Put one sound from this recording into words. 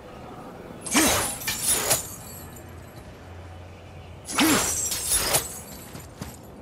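A thrown axe whooshes and strikes with a loud crash, then whirls back.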